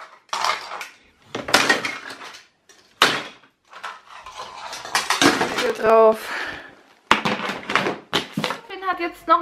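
Plastic toy bricks clatter and rattle.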